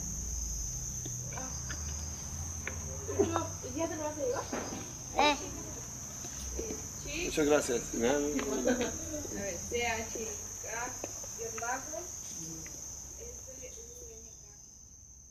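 A young boy talks quietly nearby.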